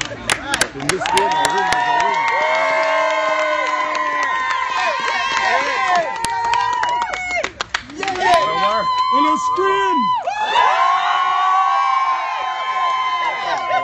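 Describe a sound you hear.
A crowd of men and women cheers and chants loudly.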